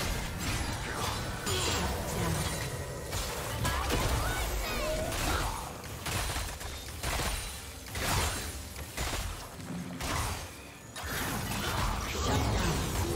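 Game spell effects burst and crackle during a fight.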